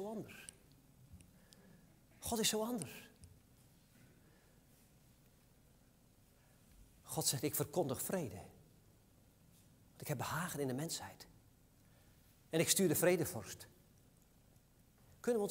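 A man speaks with animation through a microphone in a reverberant hall, in short bursts with pauses.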